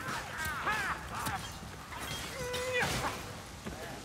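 A blade swings and strikes with sharp thuds.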